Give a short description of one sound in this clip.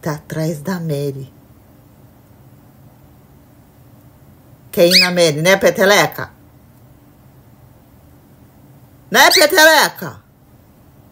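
A cockatiel whistles and chirps loudly, close by, in short bursts.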